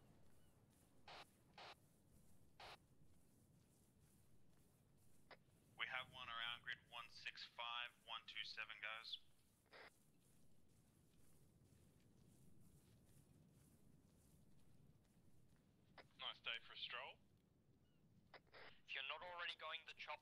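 Footsteps shuffle over dry grass and dirt.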